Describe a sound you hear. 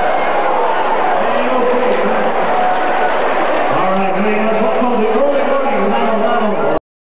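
An accordion plays a lively tune through loudspeakers.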